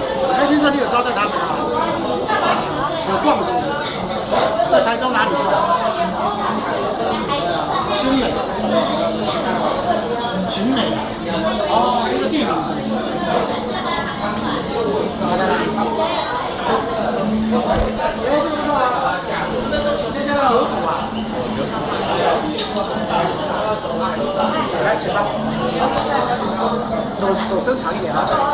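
Many people chatter around in a busy, noisy room.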